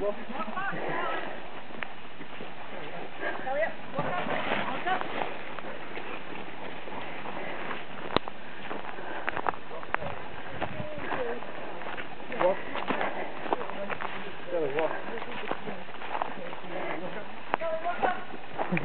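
Small pigs grunt and squeal outdoors.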